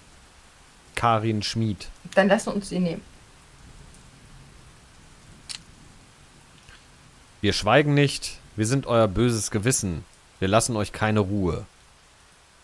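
A man talks animatedly into a microphone.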